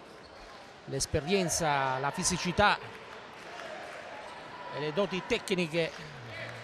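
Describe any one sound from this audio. Sneakers squeak on a hard court indoors.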